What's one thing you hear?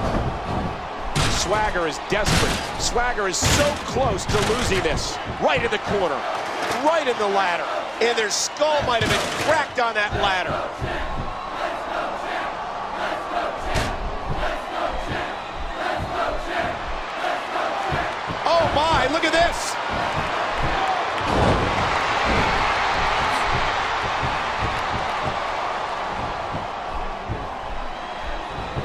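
A crowd cheers and roars.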